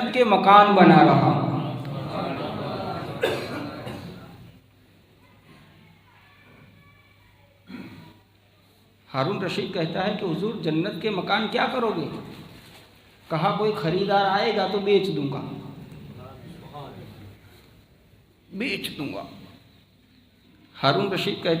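A middle-aged man speaks with animation into a microphone, heard through a loudspeaker in an echoing room.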